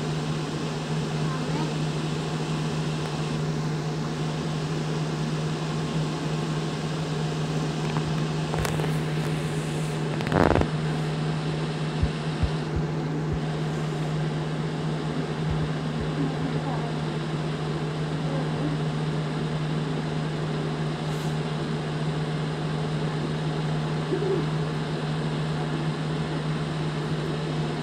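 A heavy truck engine drones steadily while driving at speed.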